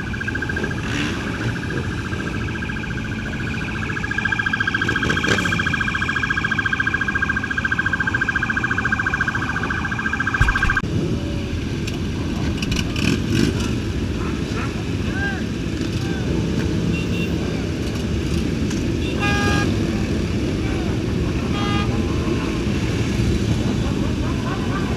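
Motorcycle engines rev loudly.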